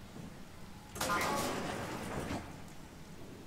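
A metal door slides open with a hiss.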